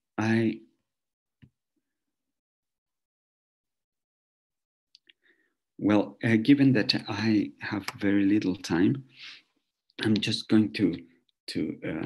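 A man speaks calmly through a computer microphone, in short phrases with pauses.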